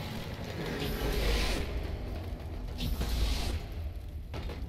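An energy blast whooshes loudly.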